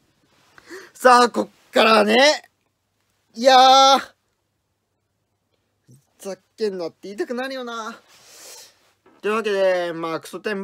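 A young man talks and exclaims loudly and animatedly close by.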